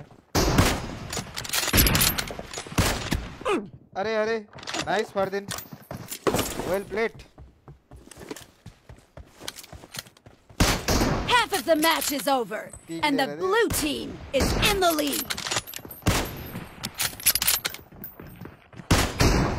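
Rifle shots fire in rapid bursts close by.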